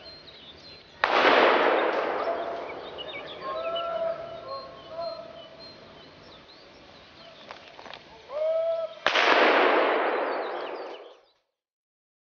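A shotgun fires loudly outdoors, each blast ringing out and fading.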